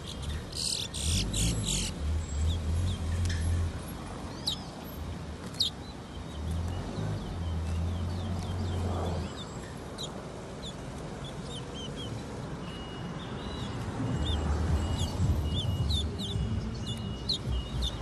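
Birds flutter their wings inside a cage.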